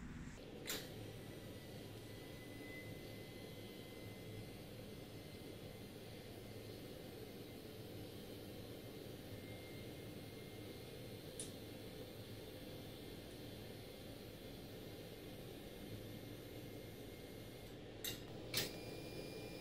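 A foot pedal clicks.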